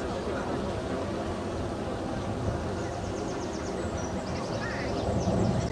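Water laps and splashes against a boat's hull.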